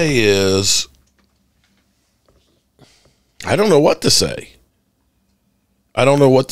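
A man speaks expressively into a close microphone, in short bursts.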